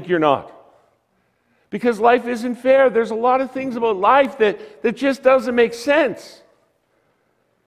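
An older man speaks with animation through a microphone in a large room.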